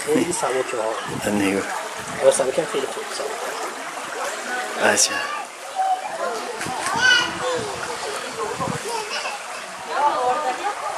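Water ripples and laps against a stone wall.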